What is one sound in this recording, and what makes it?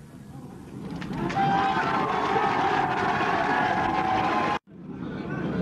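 A large crowd cheers and chants loudly.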